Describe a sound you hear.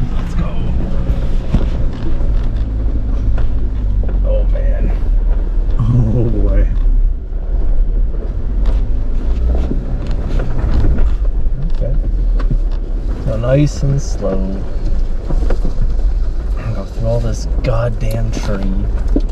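A vehicle engine rumbles low and steady while climbing.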